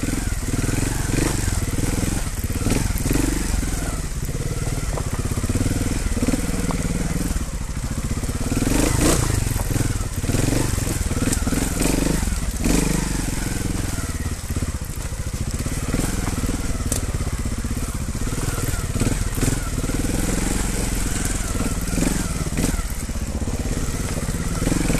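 Tyres crunch and knock over loose stones.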